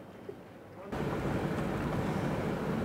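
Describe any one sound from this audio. Wind rushes loudly past a moving boat.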